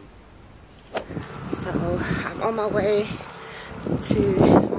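A young woman talks casually close to the microphone.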